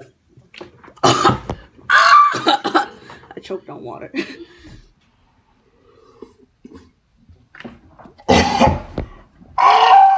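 A young woman sputters and coughs loudly, close by.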